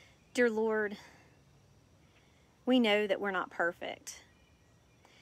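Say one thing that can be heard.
A woman speaks calmly and close by, in short phrases.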